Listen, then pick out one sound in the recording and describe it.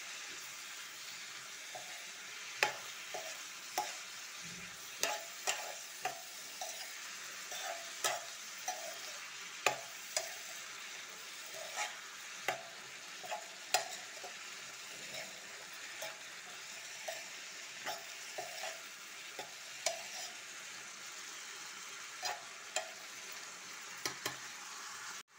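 A metal spatula scrapes and clicks against a pan.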